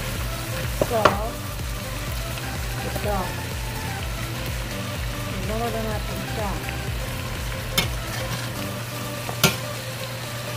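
A metal spoon clinks against a cooking pot.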